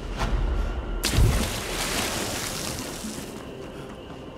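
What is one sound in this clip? Water splashes loudly as something plunges in.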